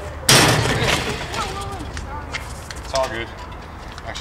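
Young men talk and call out nearby, outdoors.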